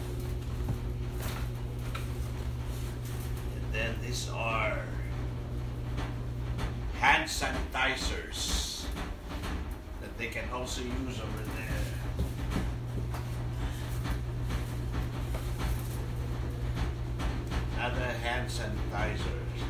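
Objects rustle and knock as a man handles them.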